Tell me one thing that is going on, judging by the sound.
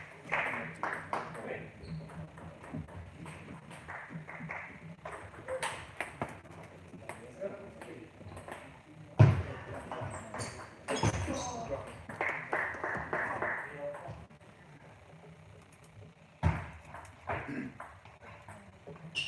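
A table tennis ball clicks back and forth off paddles and a table in an echoing hall.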